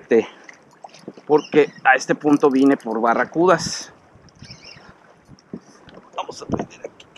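Water laps gently against a kayak's hull.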